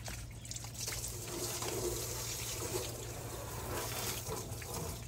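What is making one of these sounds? Water sprays hard from a hose onto a car wheel.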